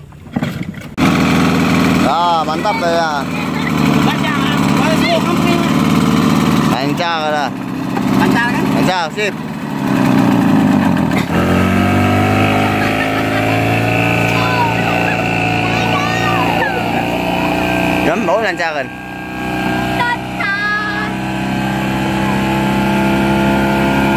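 An outboard motor runs with a loud, steady drone.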